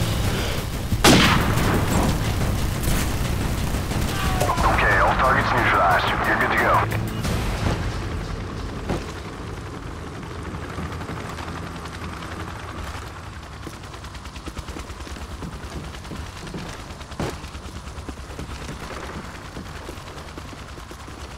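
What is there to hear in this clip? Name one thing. Footsteps crunch on rubble and debris.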